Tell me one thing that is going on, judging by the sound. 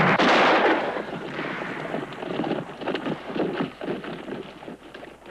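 Horses gallop with hooves pounding on a dirt trail.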